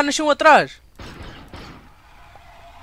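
A laser pistol fires with short zapping bursts.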